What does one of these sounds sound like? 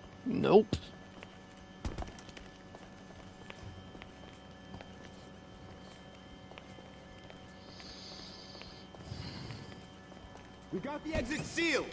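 Footsteps climb concrete stairs.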